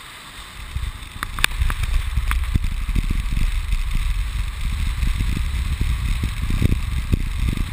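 Wind rushes loudly past the microphone, outdoors.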